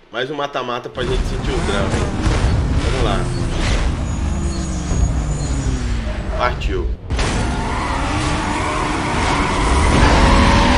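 Car engines roar and rev in a race.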